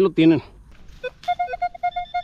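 A metal detector beeps in short, repeated tones.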